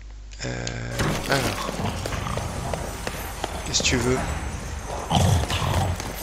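Magic energy whooshes and crackles loudly.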